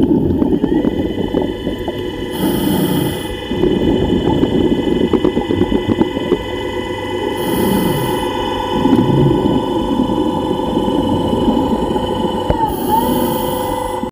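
A low, muffled underwater rumble goes on throughout.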